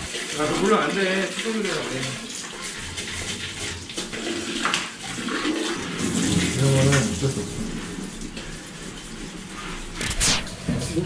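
A sponge scrubs a toilet bowl.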